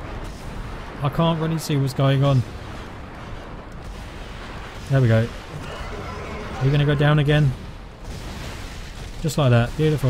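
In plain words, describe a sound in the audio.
A monster snarls and shrieks up close.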